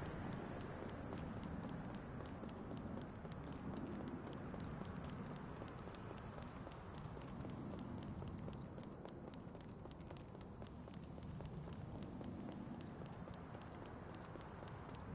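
Footsteps run on pavement.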